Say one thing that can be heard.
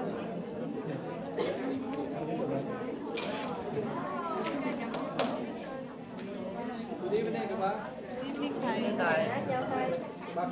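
Many men and women chatter at once in a large, echoing room.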